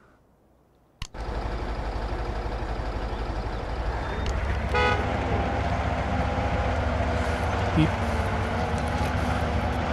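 A heavy truck engine rumbles steadily as the truck crawls over rough ground.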